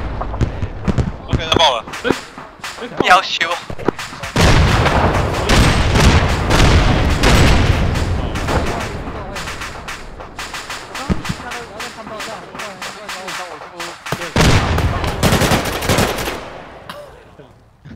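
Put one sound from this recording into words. Rifle shots crack and boom with heavy echoes.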